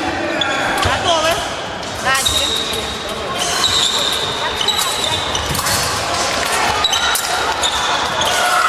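Fencers' shoes squeak and thud on a wooden floor in a large echoing hall.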